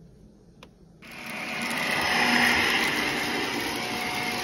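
A vacuum cleaner whirs loudly with a steady hum.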